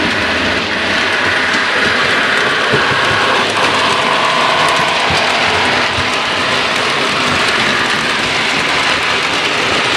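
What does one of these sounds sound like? A model train's motor hums as it runs along the track.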